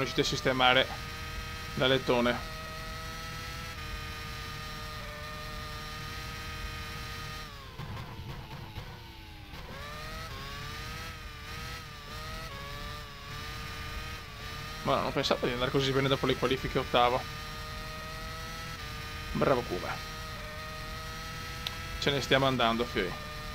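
A racing car engine whines at high revs, dropping in pitch as it brakes and rising again as it speeds up.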